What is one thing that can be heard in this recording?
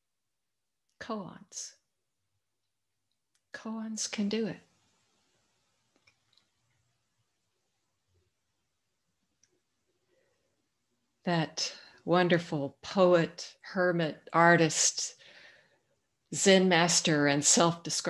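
An elderly woman speaks calmly over an online call, pausing between phrases.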